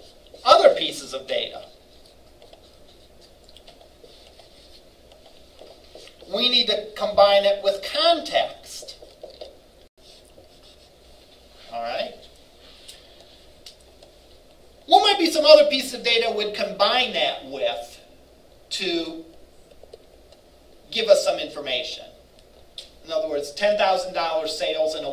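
An older man lectures in pauses, speaking calmly.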